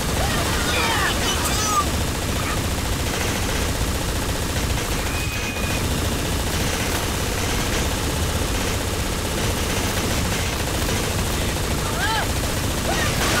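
A hover vehicle's engine hums steadily.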